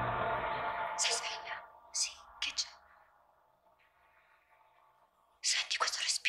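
A young woman whispers softly close by.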